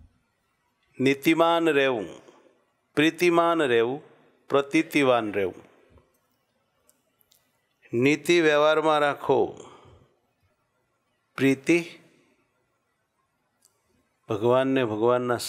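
An elderly man speaks calmly into a close headset microphone, in short phrases with pauses.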